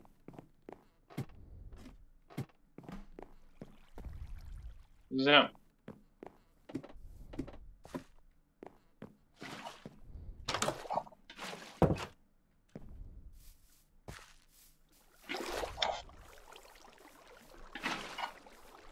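Footsteps thud steadily across wooden boards and grass.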